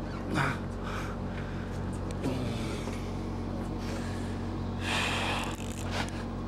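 Waves lap and splash against a boat.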